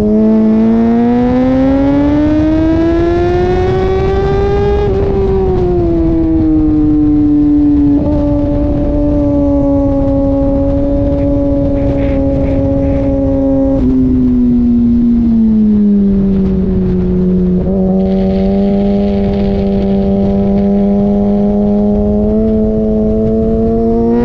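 Wind rushes past steadily at speed.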